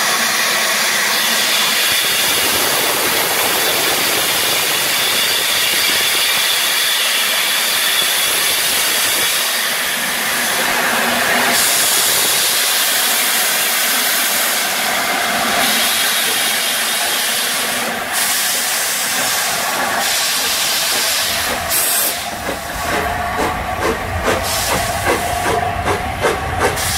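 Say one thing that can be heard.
A steam locomotive hisses loudly as it releases steam.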